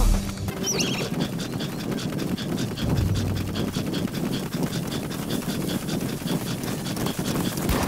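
Footsteps run quickly over dry ground and grass.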